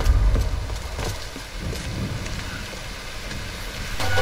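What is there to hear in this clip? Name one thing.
Footsteps tread on stone steps.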